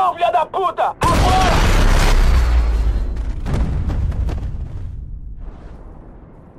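A rifle shot cracks loudly and echoes away.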